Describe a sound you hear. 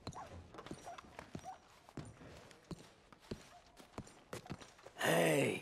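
Boots thud steadily on a wooden floor.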